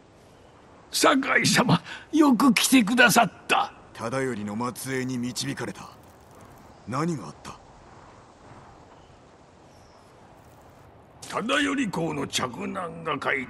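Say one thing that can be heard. An older man speaks with excitement.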